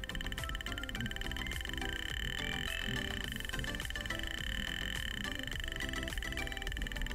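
An electronic synthesizer plays rapid, stepping tones that shift in pitch.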